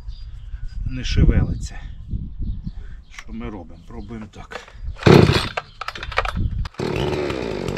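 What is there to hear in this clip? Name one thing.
A chainsaw's starter cord is pulled several times with a rasping whirr.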